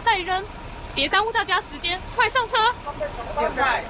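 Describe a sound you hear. A young woman speaks sharply nearby.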